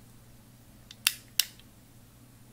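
A small switch clicks twice.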